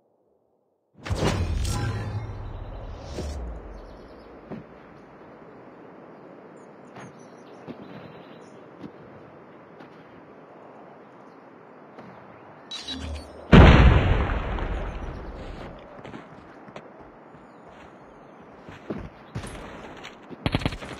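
Game music and effects play, with loud whooshing bursts.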